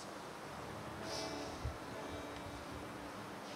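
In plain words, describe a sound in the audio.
An acoustic guitar plays a few soft notes.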